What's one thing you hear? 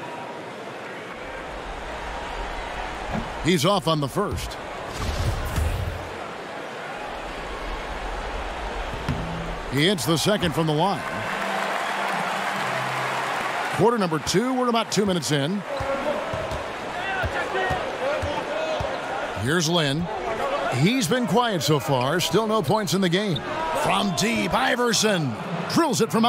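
A large arena crowd murmurs and cheers steadily.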